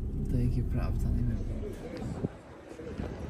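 A car engine rumbles low from inside the car.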